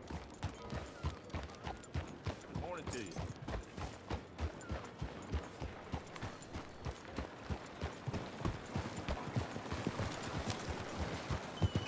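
A horse's hooves clop steadily on a dirt road.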